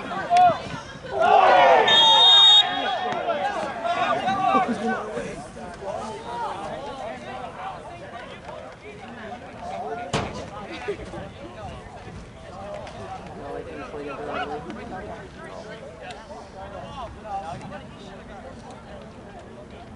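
Young male players call out to each other across an open field.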